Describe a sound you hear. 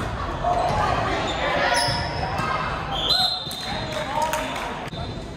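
Young women chatter and call out to each other in a large echoing hall.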